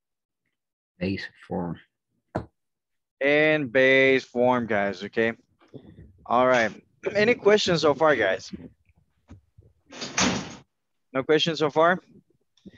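A man explains calmly, heard over an online call.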